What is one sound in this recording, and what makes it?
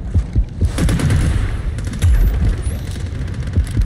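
A rifle fires muffled shots underwater.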